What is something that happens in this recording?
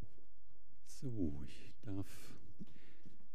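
A man speaks briefly into a microphone, heard over a loudspeaker in a large room.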